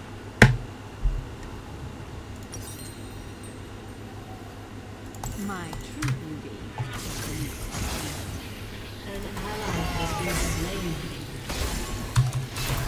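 Video game sound effects clash and whoosh.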